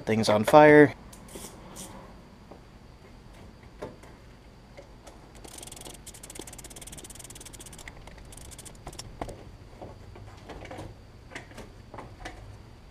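Metal tools clink and tap against an engine.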